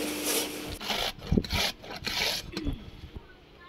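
A radish scrapes against a metal grater.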